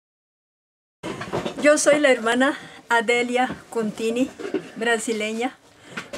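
An elderly woman speaks warmly and with animation close by.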